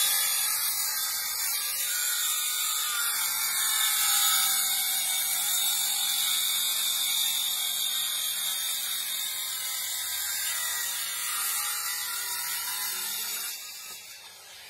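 A circular saw whines loudly as it cuts through wood.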